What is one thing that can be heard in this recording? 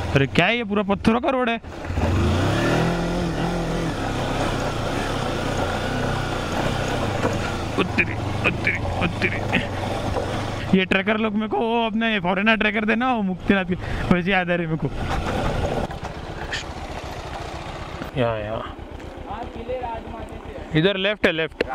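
A motorcycle engine rumbles steadily and then idles.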